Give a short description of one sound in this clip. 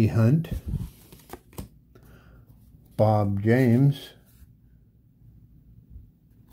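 Trading cards rustle and click as fingers flip through them.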